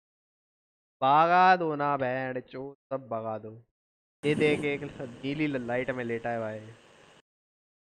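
A young man speaks with animation into a headset microphone.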